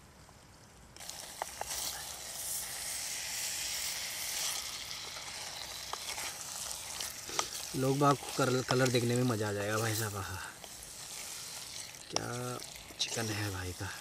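Meat sizzles in a hot pot.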